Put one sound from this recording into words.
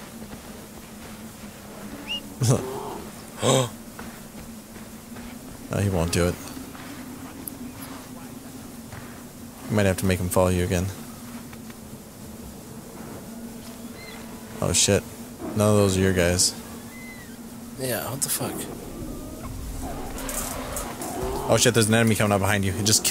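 Footsteps crunch through snow.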